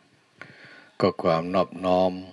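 A man chants loudly and close by.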